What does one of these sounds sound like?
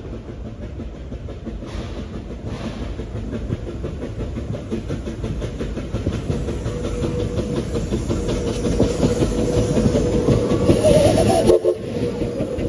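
A steam locomotive chuffs rhythmically as it approaches and passes close by.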